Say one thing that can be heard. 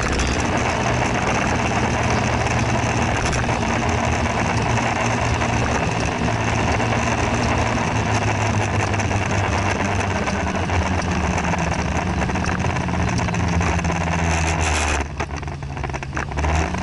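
Bicycle tyres hum on smooth pavement.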